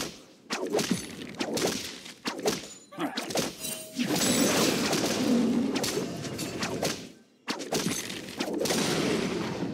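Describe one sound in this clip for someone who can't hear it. Fantasy game spells whoosh and crackle during a fight.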